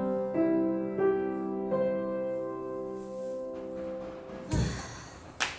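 A piano plays a gentle melody close by.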